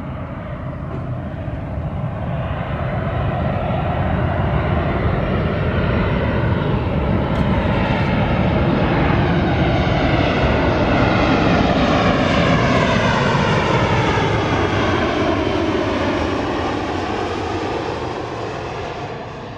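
A jet airliner roars overhead, growing louder as it approaches and then slowly fading as it passes.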